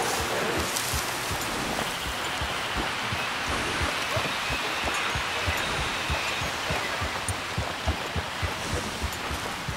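Leaves and brush rustle underfoot.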